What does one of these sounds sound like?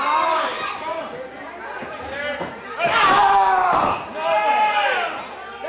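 A crowd of spectators shouts and cheers in a large hall.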